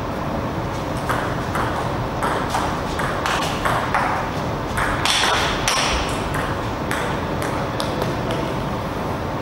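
A ping-pong ball clicks sharply back and forth on a table and paddles.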